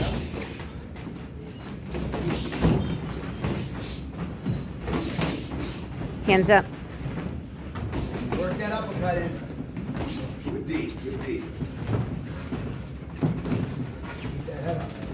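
Boxing gloves thud against each other and against the body in quick bursts.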